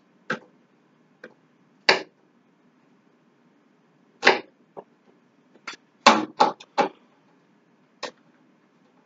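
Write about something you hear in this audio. A knife taps on a cutting board in short bursts.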